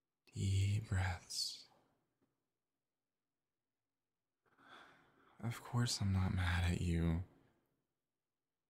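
A young man speaks softly and close to a microphone.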